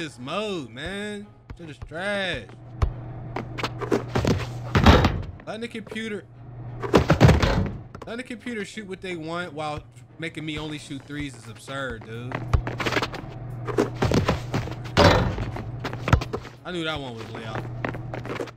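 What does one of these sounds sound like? A basketball bounces on a court floor in quick thumps.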